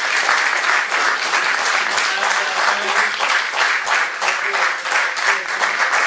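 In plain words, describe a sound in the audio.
An audience applauds warmly.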